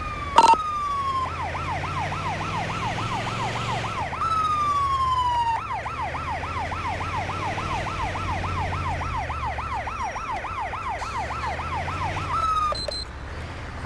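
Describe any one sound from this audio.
An ambulance siren wails and yelps, switching between tones.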